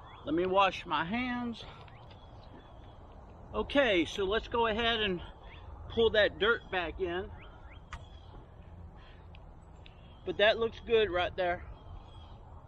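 A man talks calmly and clearly, close by, in short bursts.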